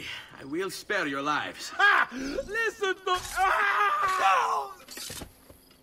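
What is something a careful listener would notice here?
A man laughs mockingly.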